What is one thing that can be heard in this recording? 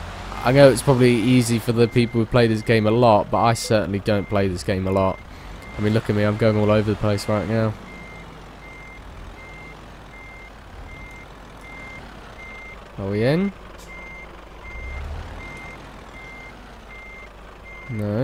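A truck engine hums low and steady while reversing.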